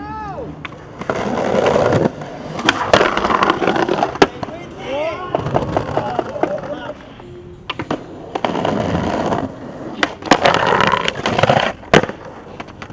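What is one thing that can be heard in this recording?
Skateboard wheels roll and grind over concrete.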